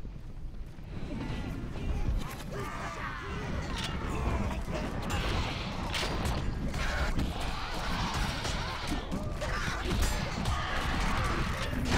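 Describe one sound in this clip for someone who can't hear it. Metal weapons clash and strike in a busy fight.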